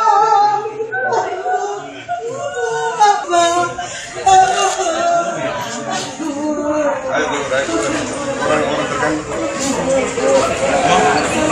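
A crowd of men and women talk excitedly close by.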